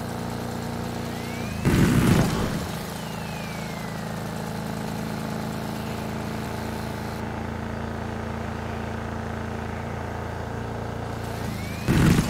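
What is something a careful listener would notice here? A vehicle engine hums as it drives along a paved road.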